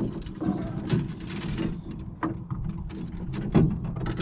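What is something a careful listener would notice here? A spinning reel clicks as its line is wound in.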